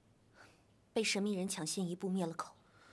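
A young woman speaks firmly and clearly, close by.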